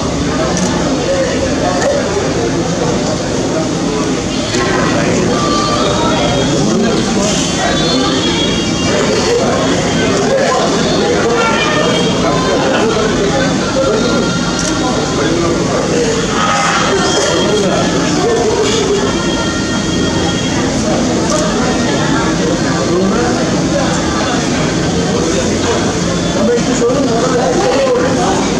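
A crowd murmurs and talks in a busy, echoing room.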